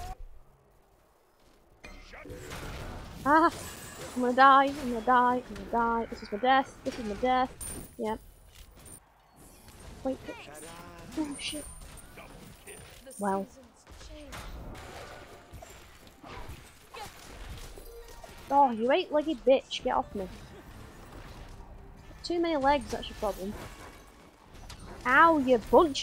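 Game sound effects clash and whoosh.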